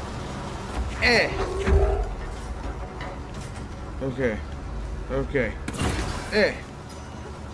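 A heavy metal crate is hurled through the air and crashes.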